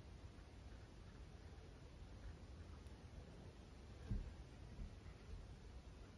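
A paintbrush dabs softly on canvas.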